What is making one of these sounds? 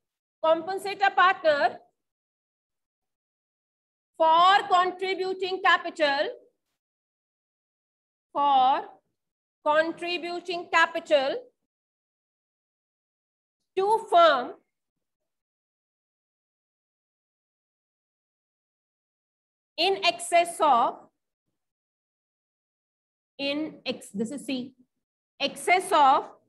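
A woman speaks calmly in short phrases, as if explaining.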